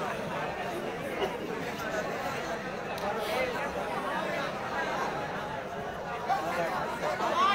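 A crowd of people shouts and chatters outdoors.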